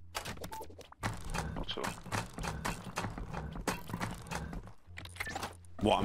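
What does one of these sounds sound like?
A hammer knocks repeatedly on wood.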